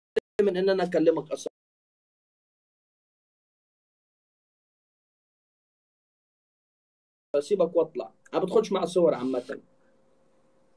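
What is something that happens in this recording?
A man speaks with animation into a microphone in short bursts.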